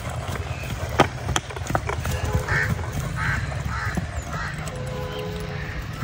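A horse's hooves thud softly on grass as it trots.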